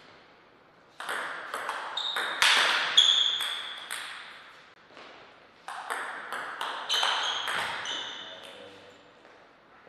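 A table tennis ball clicks back and forth off paddles and the table in an echoing hall.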